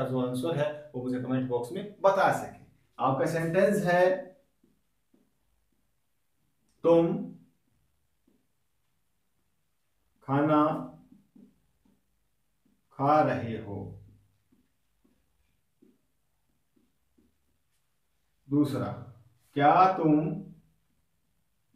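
A young man speaks calmly and clearly, pausing often.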